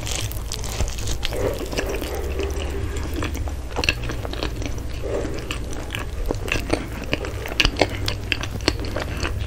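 A woman chews flaky pastry close to a microphone with crisp, crunchy bites.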